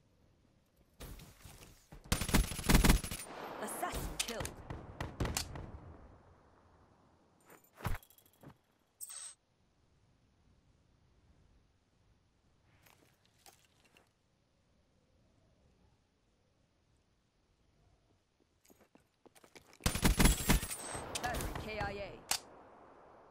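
Rapid gunfire rattles in bursts and echoes away.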